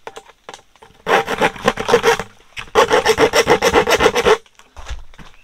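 A hand saw cuts with rapid rasping strokes.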